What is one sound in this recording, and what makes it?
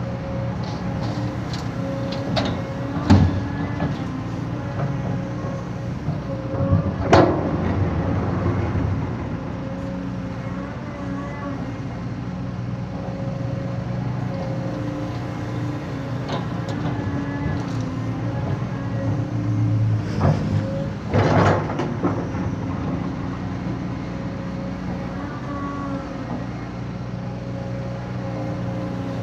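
An excavator's diesel engine rumbles and whines steadily nearby.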